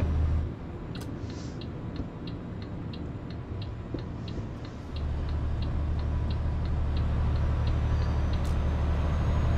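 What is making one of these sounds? A turn signal ticks evenly.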